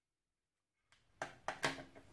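Safety glasses clatter onto a table.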